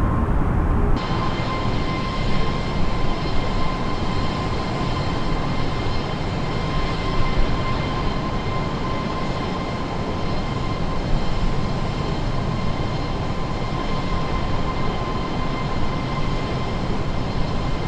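Jet engines roar steadily as the plane flies past in the open air.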